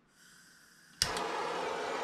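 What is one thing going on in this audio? A gas torch ignites with a sharp pop.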